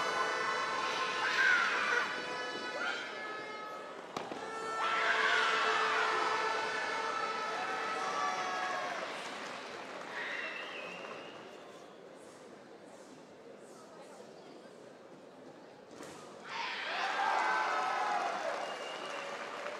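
Young women shout sharp, loud cries in unison in a large echoing hall.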